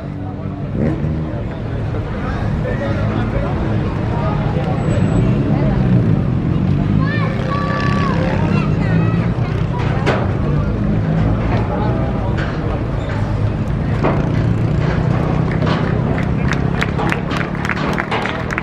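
A crowd cheers and claps outdoors.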